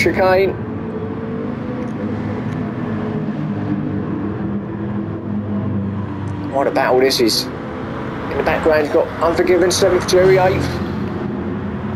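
Racing car engines roar steadily as the cars race past one another.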